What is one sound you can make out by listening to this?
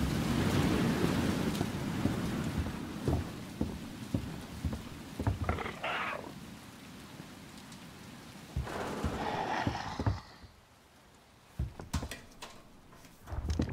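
Footsteps echo slowly across a hard floor.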